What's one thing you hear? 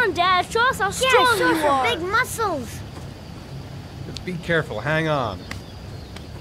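Young boys shout and laugh excitedly.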